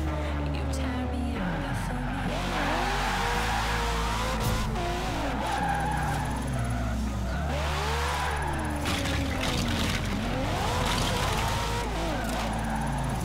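A racing car engine revs up and down.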